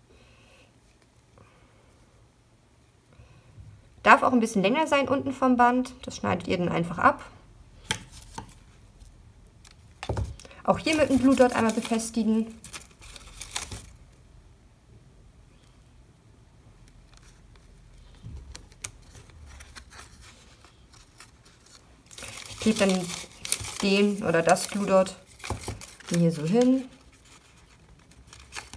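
Paper and twine rustle softly as hands handle them.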